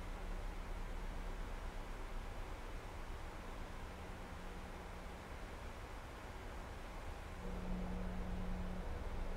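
Jet engines drone with a steady, low roar.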